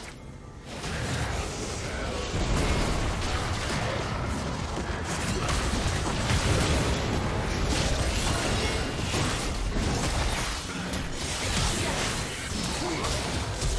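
Weapons strike in quick, repeated hits.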